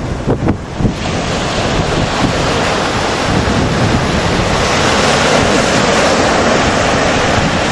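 Waves crash and wash onto a shore.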